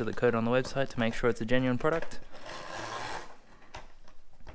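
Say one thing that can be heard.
A cardboard sleeve slides off a box.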